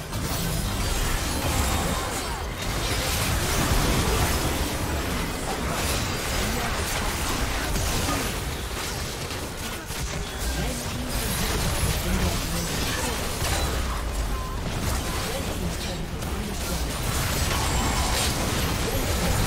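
Fantasy battle sounds of magic blasts and clashing weapons crash and whoosh without pause.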